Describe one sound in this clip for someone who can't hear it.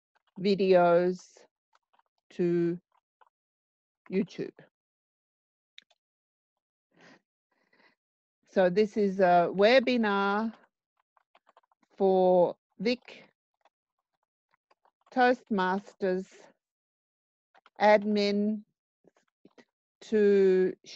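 A woman talks calmly and close to a microphone, in short phrases with pauses.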